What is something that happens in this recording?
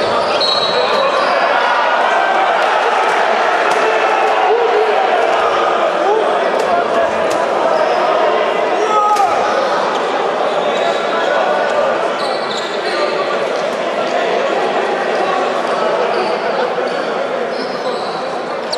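A crowd murmurs and cheers steadily in a large echoing hall.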